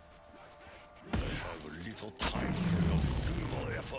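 Zombies groan and snarl close by.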